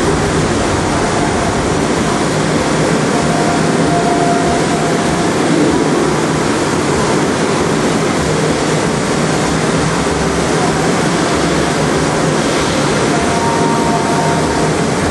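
Loud live band music booms through loudspeakers, heavily distorted.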